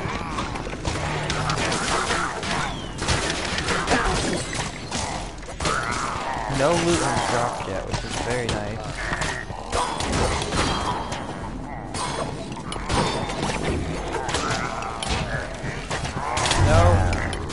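Weapons clash and strike in a fast, busy fight.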